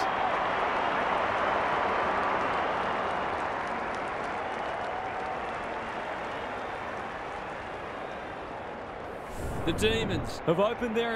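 A large crowd roars in a stadium and slowly quiets down.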